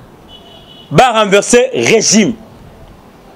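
A man laughs.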